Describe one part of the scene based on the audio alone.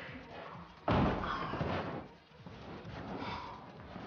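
A boy flops onto a beanbag.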